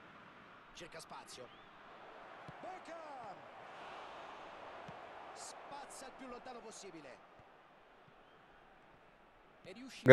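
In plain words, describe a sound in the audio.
A stadium crowd murmurs in the background.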